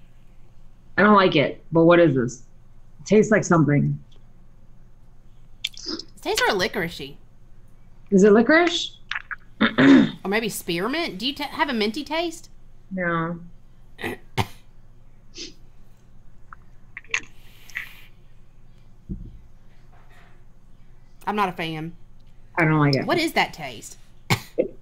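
A woman talks with animation over an online call.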